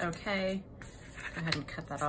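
Scissors snip.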